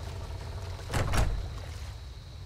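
A wooden door creaks open with a heavy thud.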